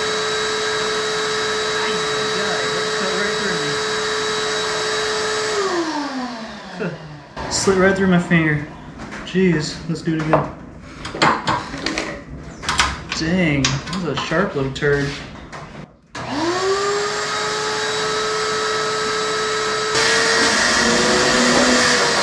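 A shop vacuum hums steadily, winds down, then starts up again.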